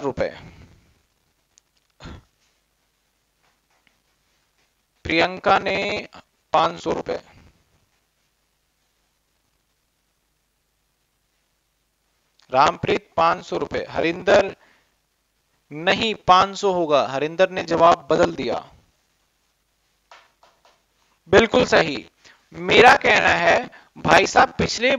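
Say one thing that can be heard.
A man speaks calmly into a close microphone, pausing often.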